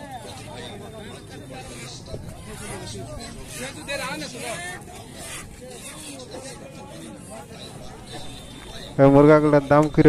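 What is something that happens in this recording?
Men talk and chatter in a crowd outdoors.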